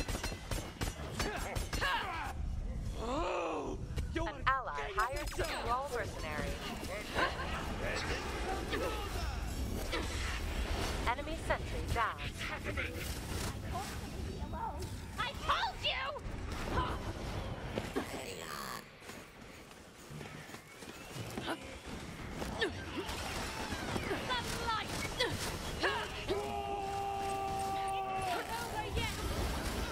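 Weapons fire and energy blasts crackle in a fast fight.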